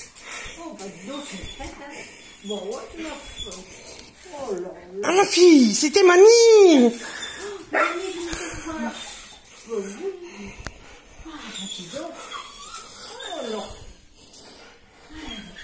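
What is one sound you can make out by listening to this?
An elderly woman talks affectionately to a dog in a high, sing-song voice close by.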